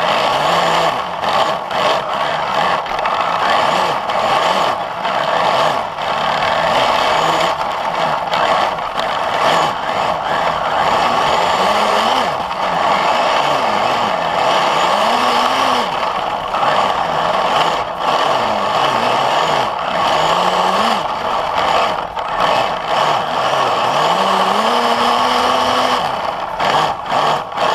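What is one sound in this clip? A small electric motor whines steadily throughout.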